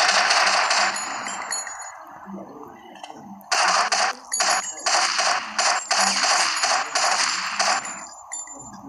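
Rapid gunfire bursts in loud volleys.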